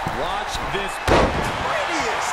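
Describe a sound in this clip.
A heavy body slams down onto a wrestling mat with a loud thud.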